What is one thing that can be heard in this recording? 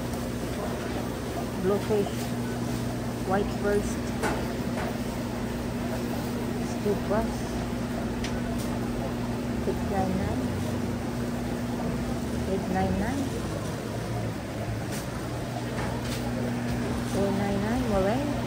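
A refrigerated display hums steadily.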